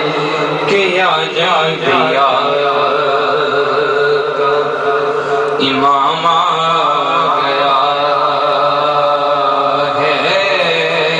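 A young man sings a melodic chant into a microphone, heard through loudspeakers.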